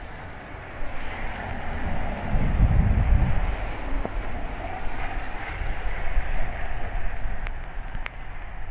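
A car drives past on a wet road, its tyres hissing.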